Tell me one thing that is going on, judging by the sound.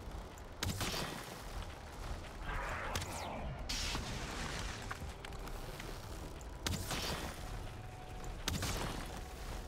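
Weapon swings strike with sharp whooshing hits.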